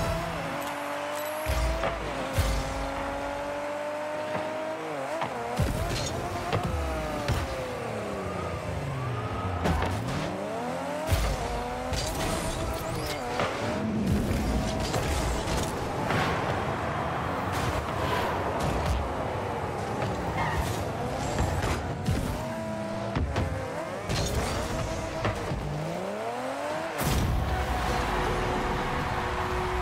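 A car engine hums and revs up and down throughout.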